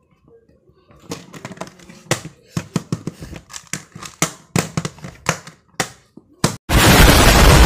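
Plastic puzzle cube pieces click and clack as they are turned quickly.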